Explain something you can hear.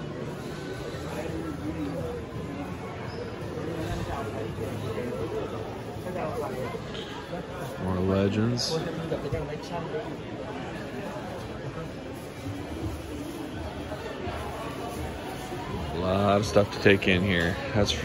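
A crowd of people chatters in the background indoors.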